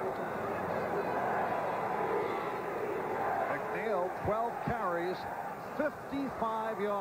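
A large stadium crowd roars steadily in the open air.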